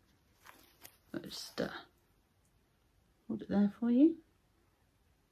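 A woman speaks briefly and calmly, close by.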